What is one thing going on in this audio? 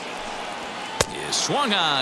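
A ball pops into a catcher's mitt.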